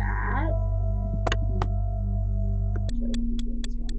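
Retro electronic game tones hum and beep.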